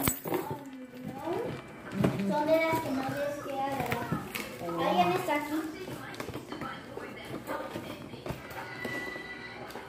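Packing tape tears off a cardboard box.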